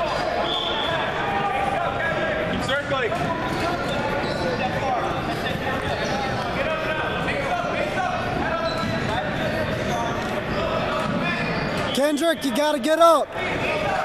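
Several people talk at once in a large echoing hall.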